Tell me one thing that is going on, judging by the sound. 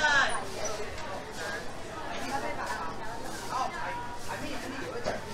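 Many voices of men and women chatter and call out nearby in a busy crowd.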